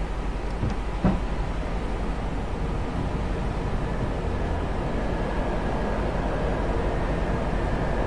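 Jet engines hum with a steady low roar.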